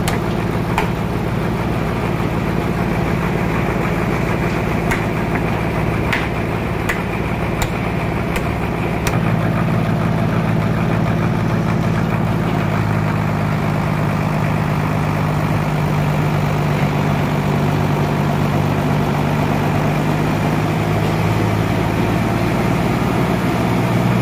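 A diesel engine runs with a steady low rumble.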